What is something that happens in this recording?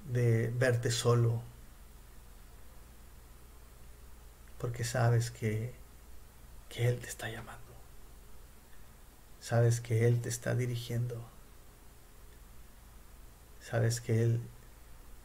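A middle-aged man speaks calmly and slowly into a nearby microphone, with pauses.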